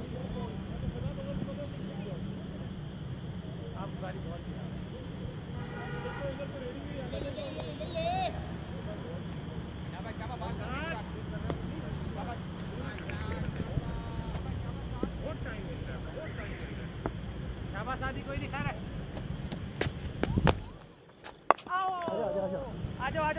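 Young men call out across an open field, heard from a distance.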